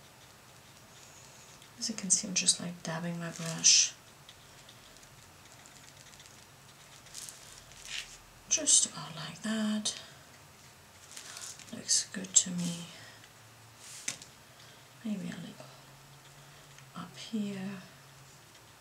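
A round paintbrush brushes lightly on watercolour paper.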